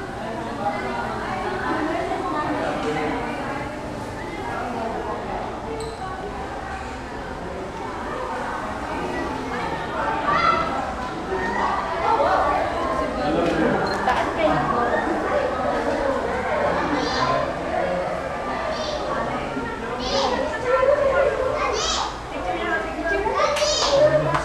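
Several people talk and chatter nearby.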